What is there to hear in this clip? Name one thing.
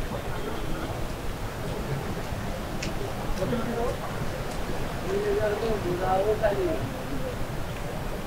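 A man talks nearby in passing.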